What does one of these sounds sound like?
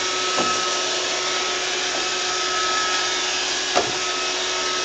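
A robot vacuum cleaner bumps against something with a soft knock.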